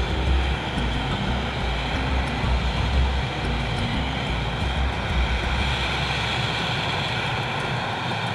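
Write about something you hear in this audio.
Helicopter rotor blades thump rapidly.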